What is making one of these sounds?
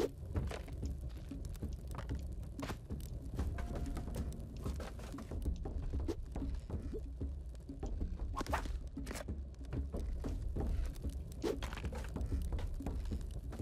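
Low video game music plays steadily.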